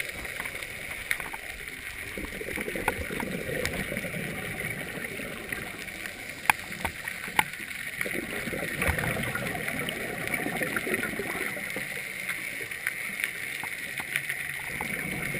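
A diver breathes out through a regulator, with bubbles gurgling and rushing upward.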